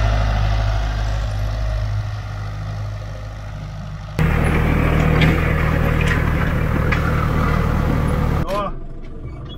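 A harrow scrapes through dry soil.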